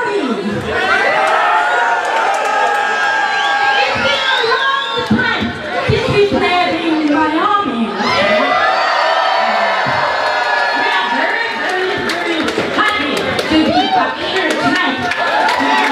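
A crowd cheers, whistles and shouts.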